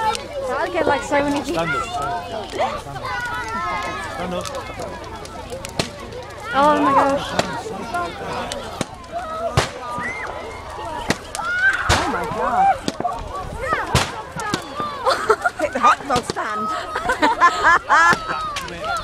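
A crowd of men and women shout and chatter excitedly outdoors.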